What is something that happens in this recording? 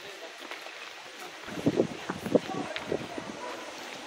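Adults and children in a small crowd chatter nearby outdoors.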